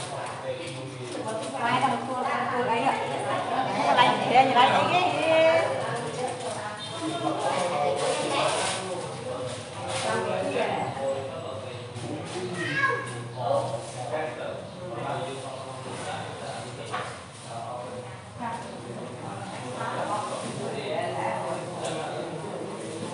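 Men and women talk nearby in a room.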